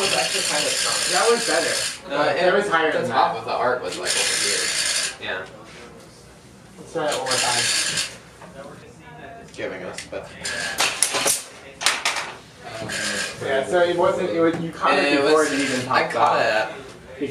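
Young men talk casually nearby.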